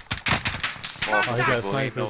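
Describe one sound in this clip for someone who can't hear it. Rapid gunfire cracks in short bursts.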